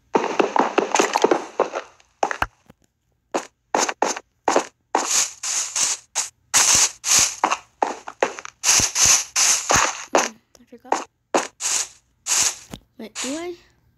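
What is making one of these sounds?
A pickaxe chips at stone in quick repeated strokes.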